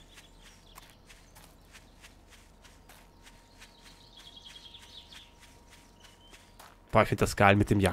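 Footsteps crunch steadily over dry grass and dirt.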